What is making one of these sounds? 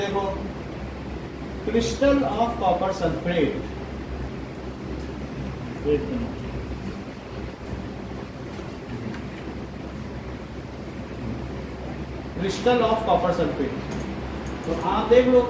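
A man speaks calmly, explaining in bursts with pauses.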